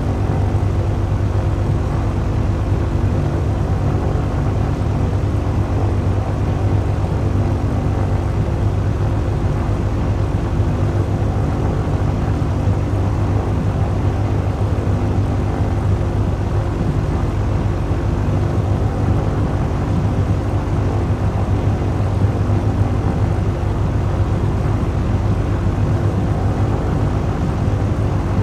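A propeller aircraft engine drones steadily as the plane rolls along a runway.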